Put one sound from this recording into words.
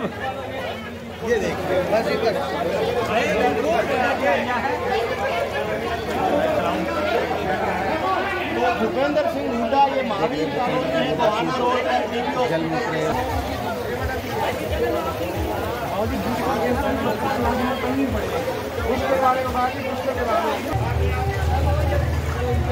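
Feet splash and slosh through floodwater.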